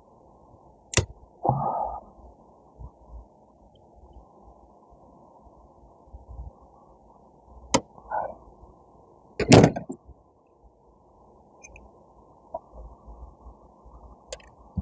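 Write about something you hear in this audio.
A small pot knocks against a hard tray now and then.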